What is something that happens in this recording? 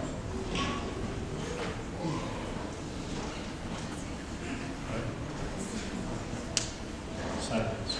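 Footsteps walk along a hard aisle.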